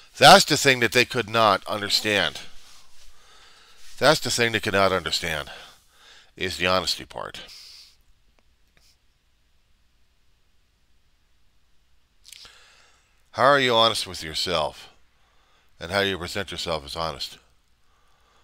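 A middle-aged man talks calmly into a headset microphone, pausing between phrases.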